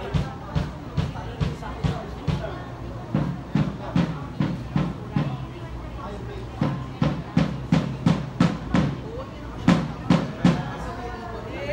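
Music with a thumping beat plays loudly through loudspeakers in a large hall.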